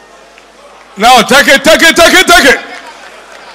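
A man shouts loudly through a microphone.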